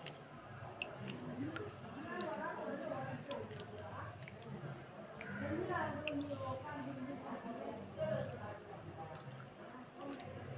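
Water sloshes in a basin.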